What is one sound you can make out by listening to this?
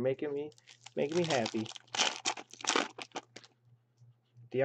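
A plastic wrapper crinkles in hands.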